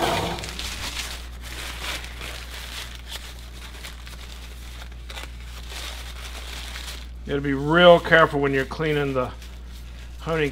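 A cloth rubs and wipes along a metal knife blade.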